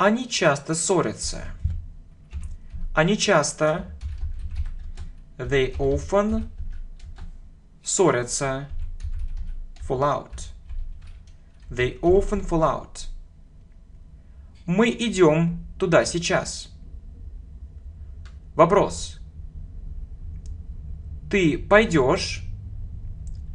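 A young man speaks calmly and slowly into a close microphone, in short phrases with pauses.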